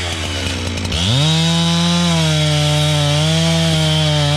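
A chainsaw cuts into a tree trunk with a loud, steady whine.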